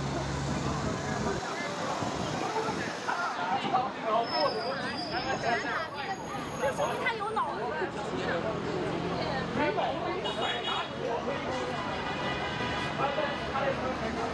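Many people chatter nearby in a crowd.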